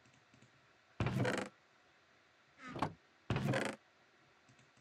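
A wooden chest creaks open and shut a few times.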